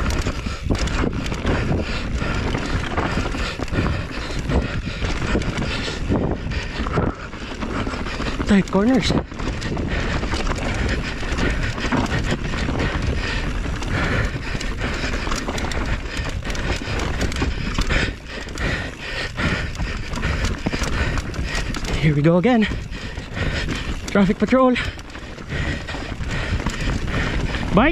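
A bike frame rattles and clatters over bumps.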